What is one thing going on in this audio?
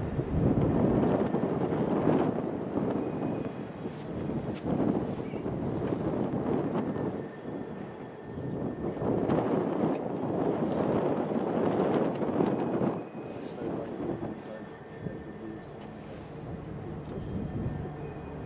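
Wind gusts roar outdoors, swelling and easing.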